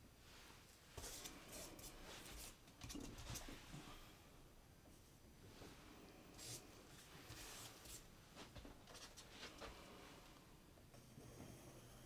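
A tool scrapes and taps on a wet painted canvas.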